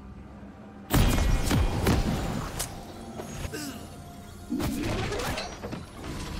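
Magic spells whoosh and crackle in a video game battle.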